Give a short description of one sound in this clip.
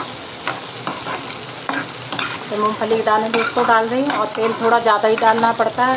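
A metal spoon scrapes and stirs in a pan.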